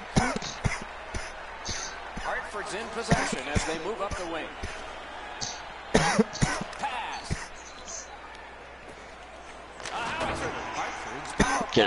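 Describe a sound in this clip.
Hockey sticks clack sharply against a puck on ice.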